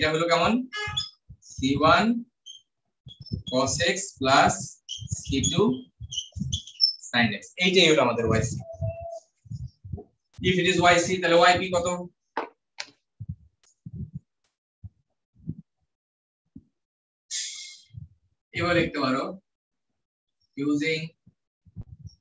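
A man lectures with pauses, heard through a microphone.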